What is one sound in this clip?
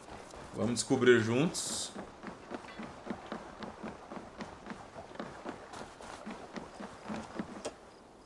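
Armoured footsteps run across wooden planks.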